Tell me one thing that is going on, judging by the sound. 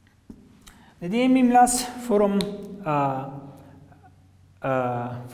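A man speaks clearly and with animation.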